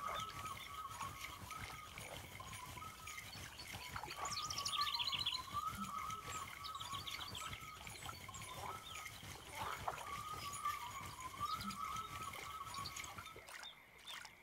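A fishing reel whirs steadily as line is wound in, then stops.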